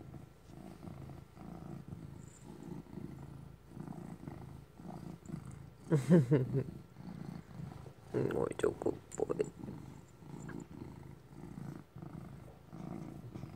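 A hand strokes a cat's fur with a soft rustle.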